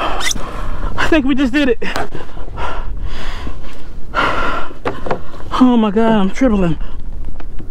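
A man exclaims loudly in a drawn-out voice.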